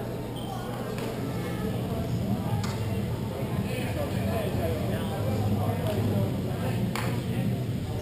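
Hockey sticks clack against the ball and the floor in a large echoing hall.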